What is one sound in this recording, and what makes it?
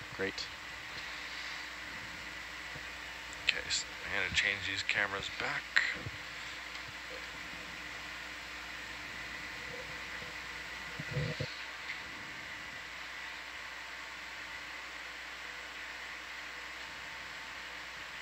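A machine hums steadily underwater.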